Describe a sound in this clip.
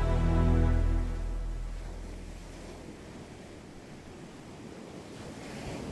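Waves break and wash up onto the shore.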